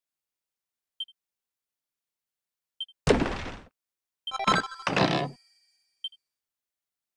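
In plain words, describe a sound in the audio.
Soft blips chime as text boxes advance.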